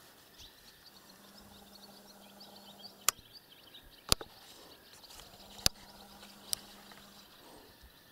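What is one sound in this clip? A truck engine hums at a distance.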